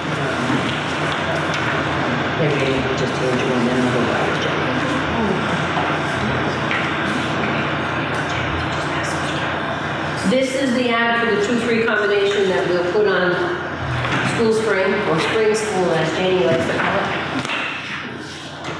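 A woman speaks calmly, heard through a distant microphone in a room.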